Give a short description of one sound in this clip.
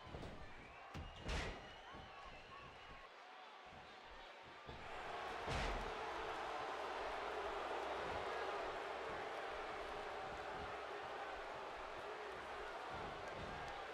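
A large crowd cheers and roars, echoing through a big arena.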